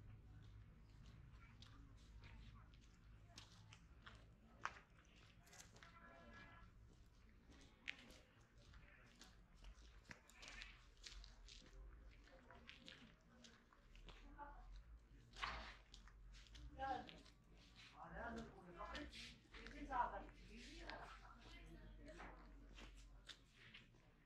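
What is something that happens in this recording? Footsteps crunch on a dirt and gravel road.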